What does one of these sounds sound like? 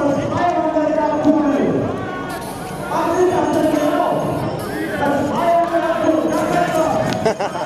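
A man sings loudly outdoors.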